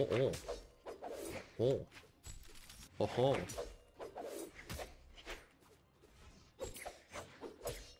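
Blades swish and clash in quick bursts.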